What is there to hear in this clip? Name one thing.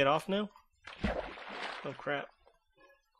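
Water splashes as something plunges in.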